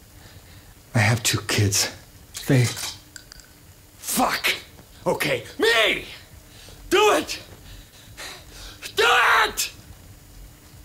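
A man pleads in a strained, desperate voice.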